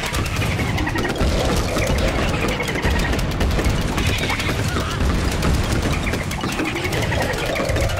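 Rapid popping shots fire continuously in a busy game.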